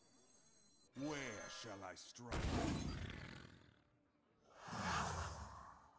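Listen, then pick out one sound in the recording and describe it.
A game plays a loud magical burst sound effect.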